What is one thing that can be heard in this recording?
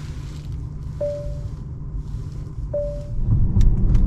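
A car's touchscreen beeps briefly.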